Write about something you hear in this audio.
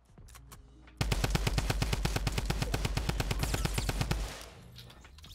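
A rifle fires rapidly in a long burst.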